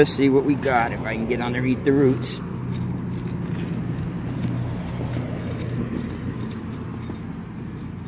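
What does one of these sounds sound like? A small trowel scrapes and digs into soil.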